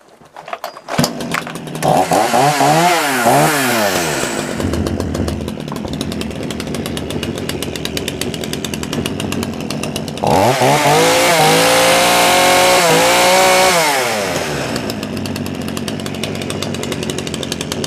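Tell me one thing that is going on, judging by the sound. A chainsaw engine sputters to life and runs loudly.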